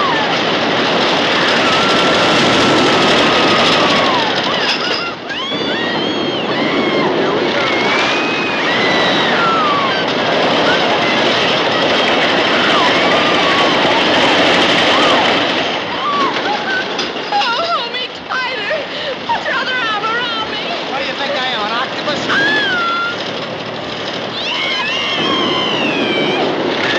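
A young woman screams loudly.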